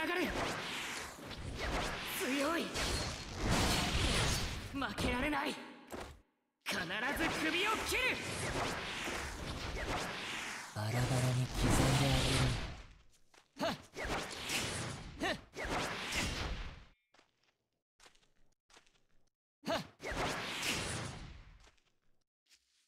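Blades whoosh and slash in quick bursts.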